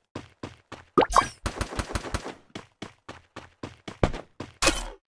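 Quick footsteps run steadily over hard ground.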